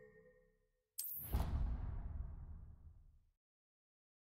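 A deep magical whoosh swells and fades away.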